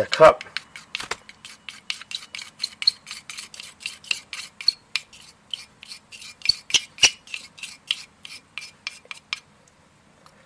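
A plastic spatula scrapes a thick paste out of a cup with quick, repeated taps.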